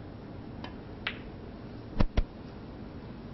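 Snooker balls knock together with clicks.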